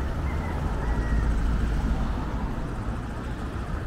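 A motor scooter drives past.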